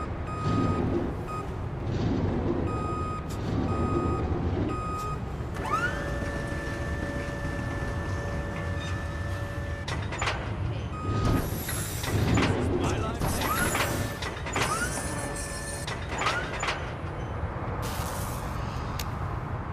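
A scissor lift's motor hums as the platform rises.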